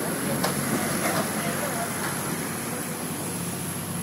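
A digger's engine rumbles nearby.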